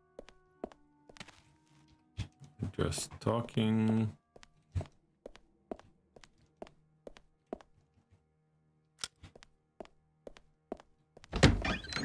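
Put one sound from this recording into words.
Footsteps clack steadily on stone paving.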